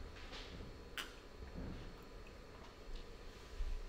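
An elderly man sips from a cup.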